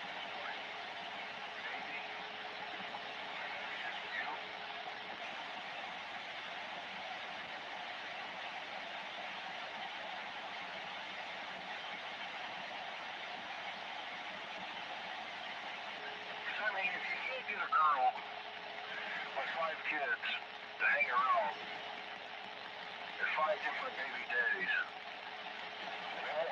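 Steady static hisses from a radio receiver.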